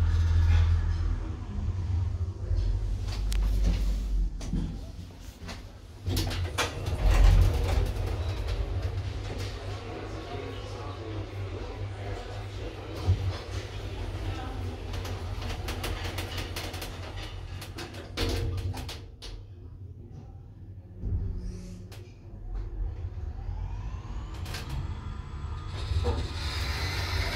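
A hydraulic elevator pump hums.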